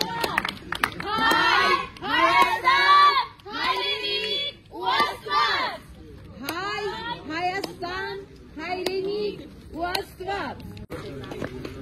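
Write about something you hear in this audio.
A woman talks loudly and with animation close by.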